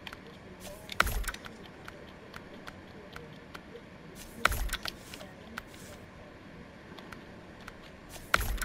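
A short whooshing sound plays as a menu switches.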